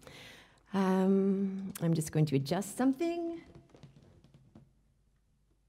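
A woman sings close to a microphone.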